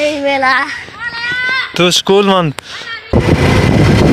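A young boy talks up close.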